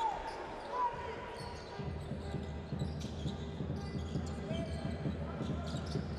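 A basketball bounces with dull thumps on the court.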